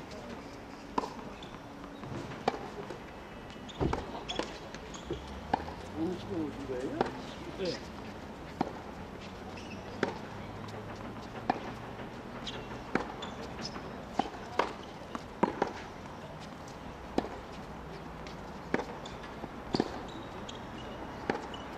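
Tennis balls are struck with rackets in a rally, with sharp pops.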